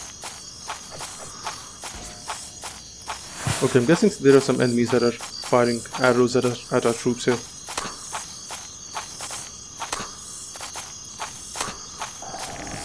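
Armoured footsteps clink and thud steadily on soft ground.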